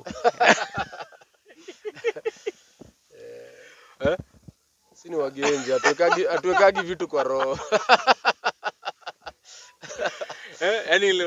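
A young man laughs loudly into a microphone, close by.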